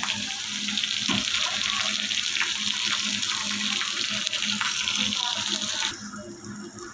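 Oil sizzles steadily in a hot pan.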